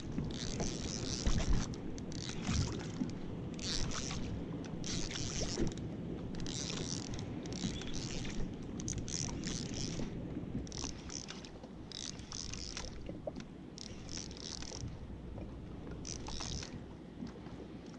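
A fishing reel whirs in repeated bursts as the line is wound in.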